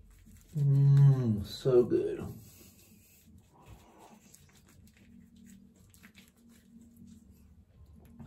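Fingers rub shaving foam on a face.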